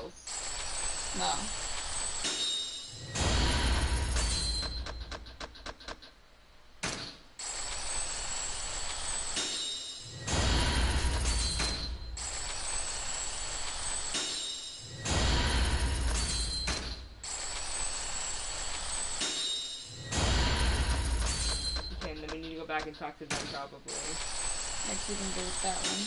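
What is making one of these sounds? Rapid electronic ticking rattles as a counter rolls.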